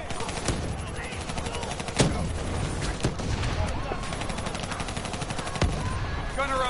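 A gun fires in sharp single shots.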